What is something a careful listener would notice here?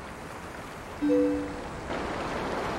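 A short two-note chime rings.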